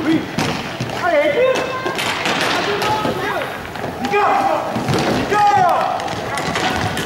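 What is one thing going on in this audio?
Inline skate wheels squeak sharply on a hall floor.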